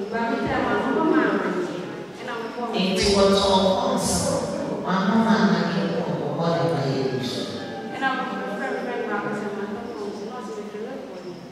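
A woman speaks with animation into a microphone, heard through loudspeakers.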